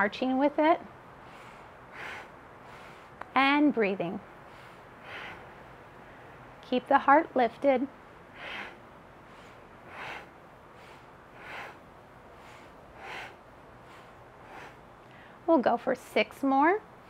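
A young woman speaks calmly and slowly, close by, in short phrases.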